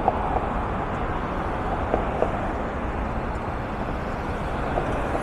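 Car engines hum nearby on a city street.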